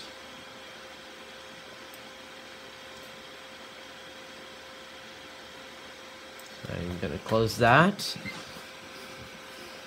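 A computer fan hums steadily.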